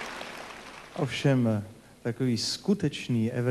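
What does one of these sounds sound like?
A middle-aged man speaks warmly into a microphone.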